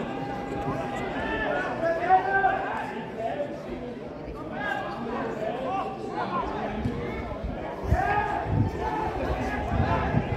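A ball is kicked with a dull thud.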